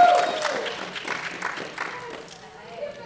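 A crowd cheers and claps at the start.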